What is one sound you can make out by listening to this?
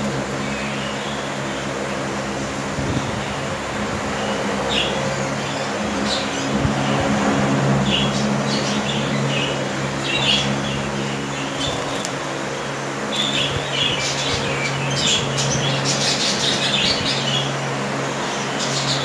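A budgie chirps and twitters in quick bursts close by.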